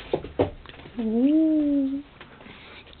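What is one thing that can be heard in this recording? A dog lets out a short, rising whine up close.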